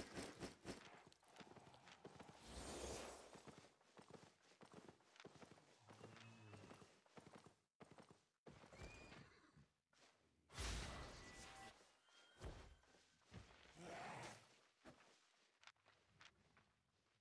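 Sharp game combat effects clash and whoosh in short bursts.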